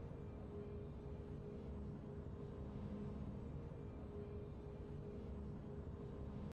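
Triumphant fanfare music plays from a video game.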